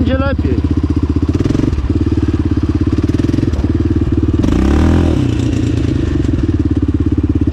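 A quad bike engine revs loudly close by, rising and falling.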